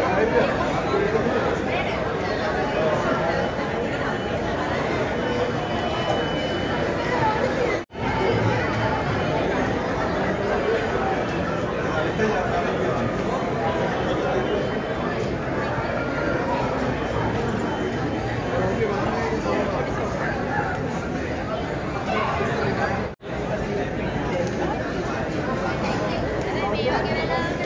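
A crowd of men and women chatters loudly all around in an echoing hall.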